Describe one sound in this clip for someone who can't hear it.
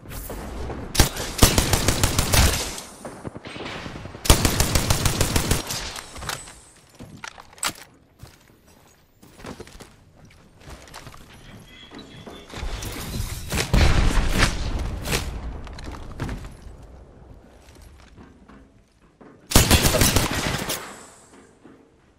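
Rifle shots fire in rapid bursts, close by.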